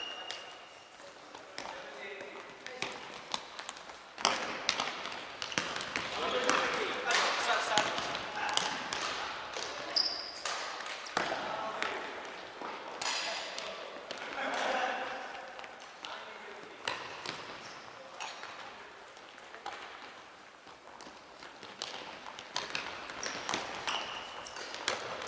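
Players' shoes squeak and thud on a hard floor in a large echoing hall.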